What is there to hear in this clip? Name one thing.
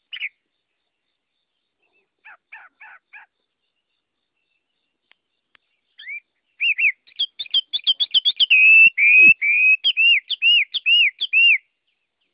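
Small caged birds chirp and sing in quick, bright whistles.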